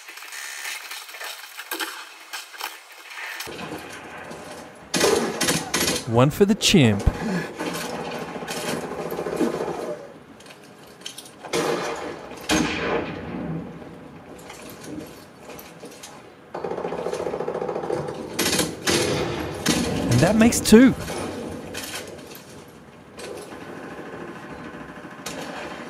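Gunfire and game sounds play loudly from a television's speakers.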